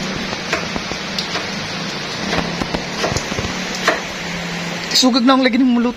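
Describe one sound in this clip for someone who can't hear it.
A knife taps on a cutting board as food is sliced.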